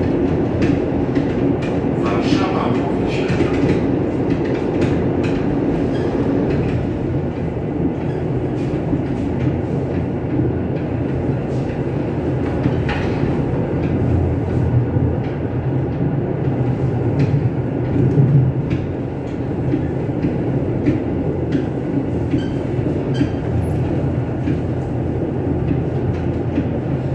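A train rumbles steadily along the tracks from inside the cab.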